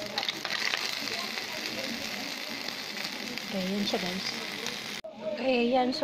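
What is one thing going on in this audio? Mussels sizzle and hiss in a hot pan.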